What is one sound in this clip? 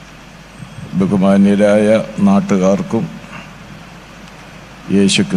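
An elderly man speaks into a microphone over a loudspeaker in a large hall, with emphatic, drawn-out phrases.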